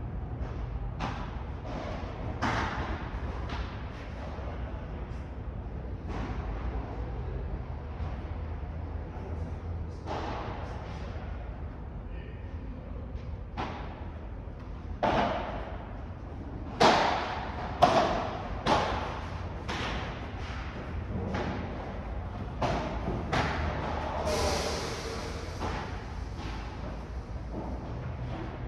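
Padel rackets strike a ball with sharp pops in a large echoing hall.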